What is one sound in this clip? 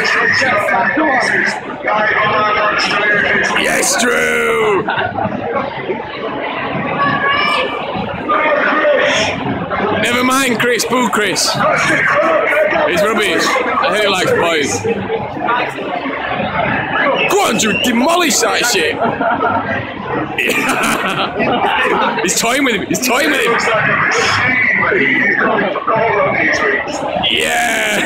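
Men talk and shout loudly over a noisy crowd.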